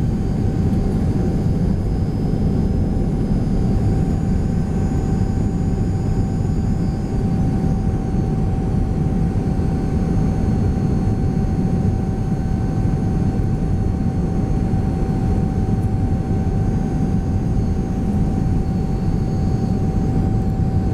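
A jet engine roars steadily from close by, heard from inside an airliner cabin.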